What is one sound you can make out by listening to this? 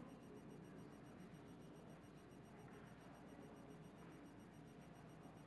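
Men and women murmur and chat quietly at a distance in a large room.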